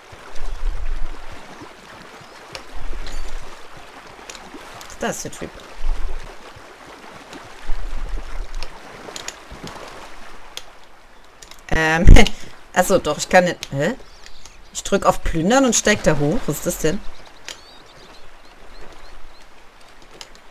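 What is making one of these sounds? Footsteps wade and splash through shallow water.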